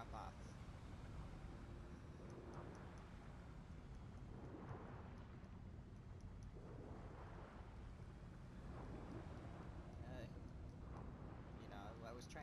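Air bubbles gurgle from a diver's breathing gear.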